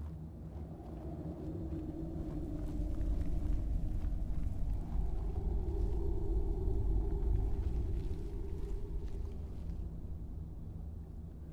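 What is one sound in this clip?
Footsteps crunch slowly over loose gravel.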